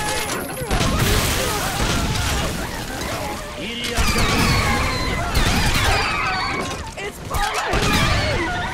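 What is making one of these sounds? Rockets explode with heavy booms.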